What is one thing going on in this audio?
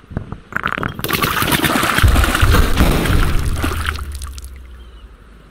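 A bursting splash rumbles and fizzes, then fades.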